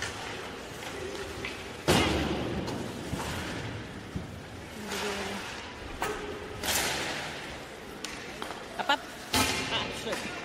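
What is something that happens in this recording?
Skates scrape and hiss across the ice in a large echoing rink.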